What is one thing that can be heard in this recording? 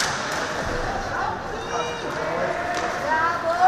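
Spectators shout and call out in a large echoing arena.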